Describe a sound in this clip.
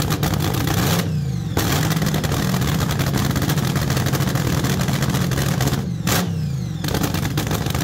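A dragster engine briefly revs up and drops back.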